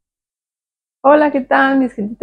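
A woman speaks cheerfully and close to the microphone.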